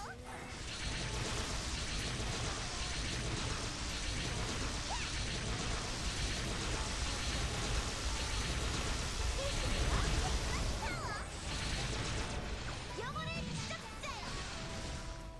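Game spell effects crackle and boom in a dense, steady roar.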